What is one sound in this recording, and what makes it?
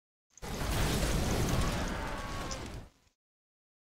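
A fiery blast roars and crackles, then fades out.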